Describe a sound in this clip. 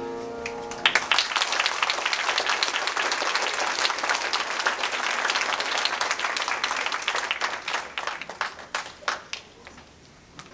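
An audience claps loudly and the applause slowly dies away.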